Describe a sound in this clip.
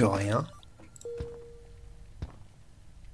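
A game menu closes with a soft electronic tone.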